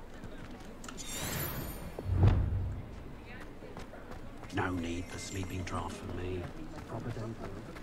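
Footsteps tap on cobblestones.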